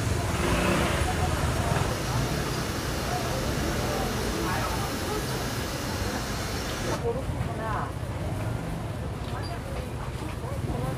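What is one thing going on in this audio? Adult men and women talk nearby in a busy outdoor street.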